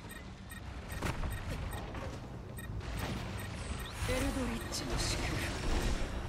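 Gunshots crack and echo in a video game battle.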